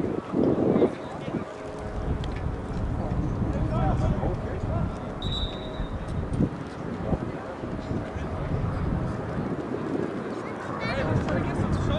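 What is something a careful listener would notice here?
Distant players call out to one another.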